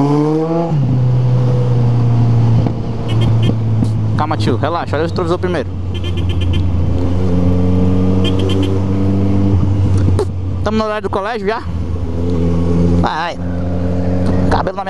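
A motorcycle engine hums steadily up close, its pitch rising and dropping as it shifts gears.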